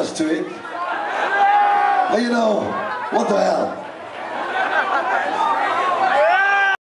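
A man sings loudly into a microphone over a live band.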